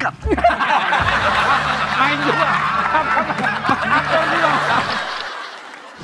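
Several men laugh loudly together.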